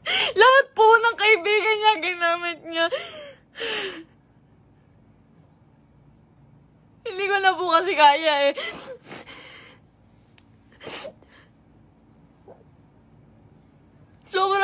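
A young woman sobs and wails loudly, close by.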